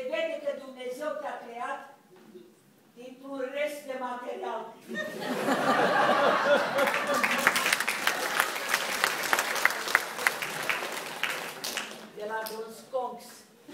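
A man speaks loudly on a stage in a large echoing hall.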